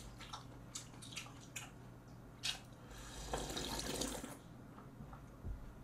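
A young man chews and eats food noisily close by.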